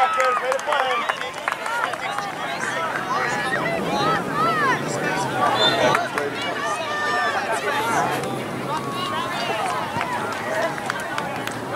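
A crowd of young players and spectators shouts and calls out across an open field.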